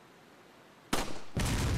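A pistol fires sharply.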